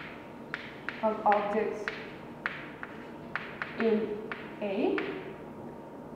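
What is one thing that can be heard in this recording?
A young woman speaks in short phrases, close by in a reverberant room.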